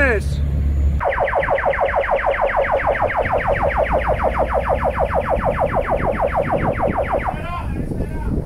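A ship's siren warbles rapidly and loudly, then stops.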